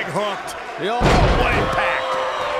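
A heavy body slams onto a wrestling ring mat with a deep thud.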